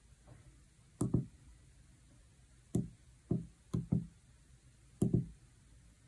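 Calculator keys click as they are pressed.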